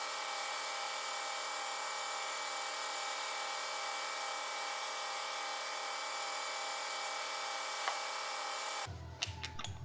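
A metal lathe hums as its tool turns a metal bar.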